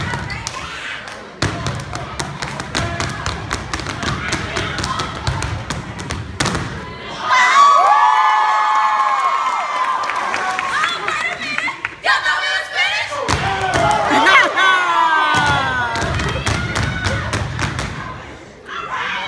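Young women clap their hands sharply in time.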